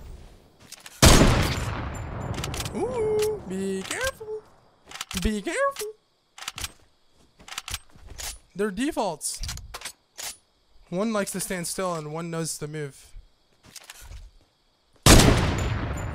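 A rifle fires a loud, sharp shot that echoes away.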